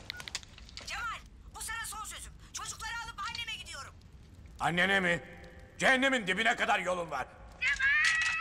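A young man talks calmly on a phone.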